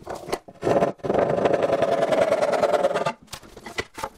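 A hand saw cuts through wood with quick strokes.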